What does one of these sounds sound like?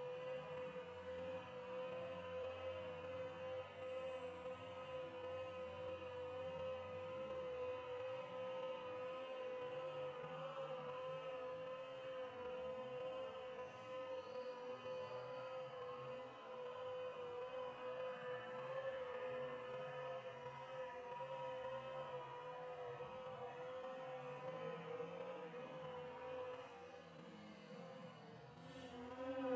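A large bee buzzes steadily while hovering close by.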